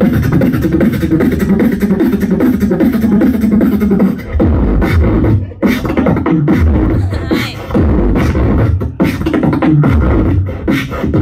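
A young man beatboxes rapidly into a microphone through loudspeakers.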